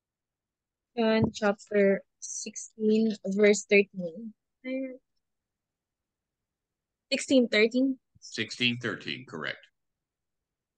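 A woman speaks in short phrases over an online call.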